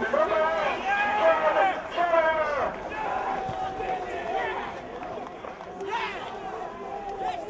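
Footballers shout in celebration from a distance.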